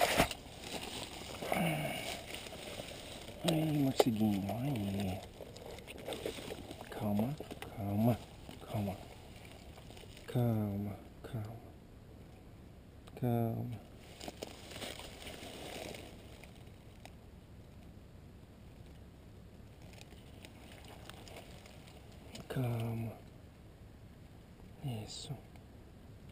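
Paper crinkles as hands handle a packet.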